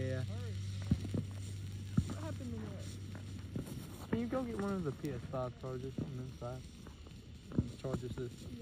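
Fireworks pop sharply now and then.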